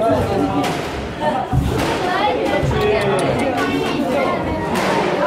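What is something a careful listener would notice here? A squash ball smacks against the front wall of a court.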